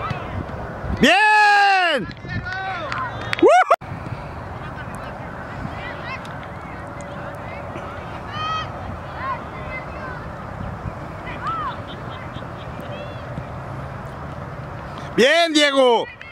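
Young players shout outdoors on an open field.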